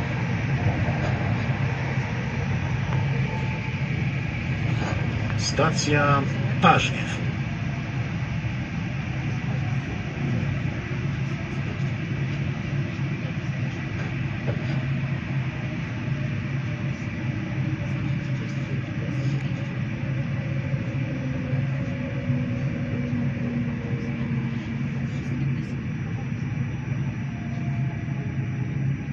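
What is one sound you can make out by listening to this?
Train wheels clatter over the rails.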